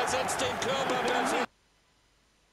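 A crowd cheers in a stadium.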